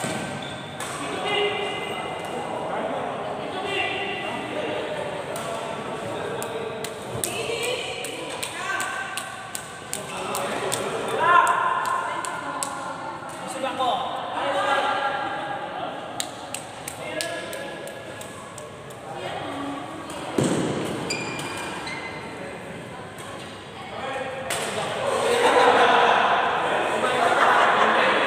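Sports shoes squeak on a sports hall floor.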